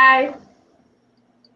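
A woman speaks a few cheerful words over an online call.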